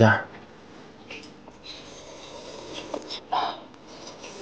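A young man chews and slurps greens noisily.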